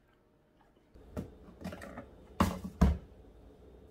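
A carton drops into a bin with a clunk.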